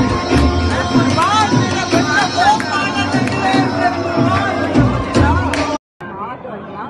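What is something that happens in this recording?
A lively crowd chatters loudly.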